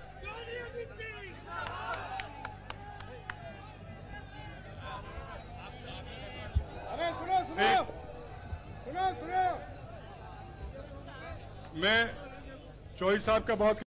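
A crowd of men shouts and cheers outdoors.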